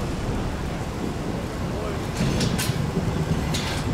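A metal barrier rattles as a man moves it.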